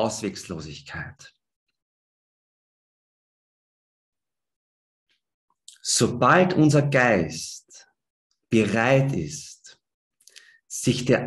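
A man speaks calmly into a microphone over an online call, pausing between phrases.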